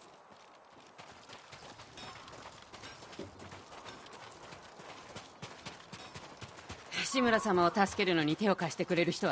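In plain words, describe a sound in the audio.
Footsteps run quickly over gravel.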